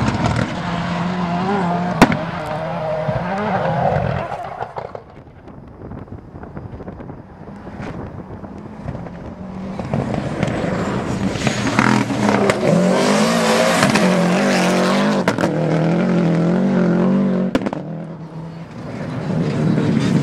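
A turbocharged four-cylinder rally car engine roars at full throttle.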